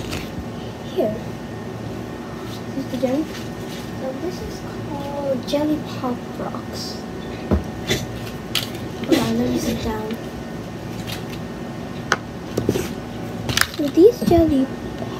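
A young girl speaks close by, calmly.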